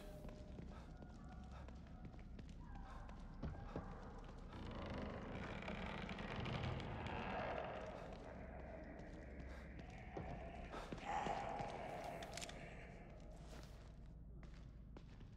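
Footsteps walk on a hard stone floor.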